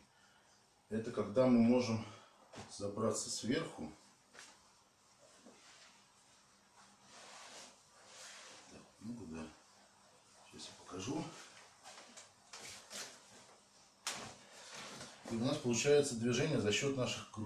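A man talks calmly and explains, close by.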